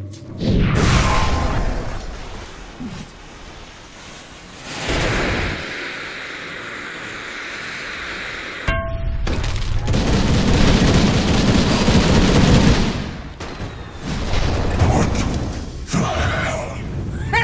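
Magic spells crackle and boom in bursts.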